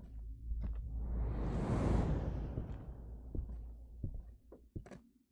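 A loud rushing whoosh swells and then slowly fades.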